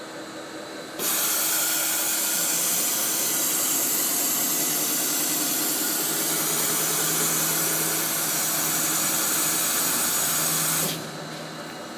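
Air hisses loudly from a machine.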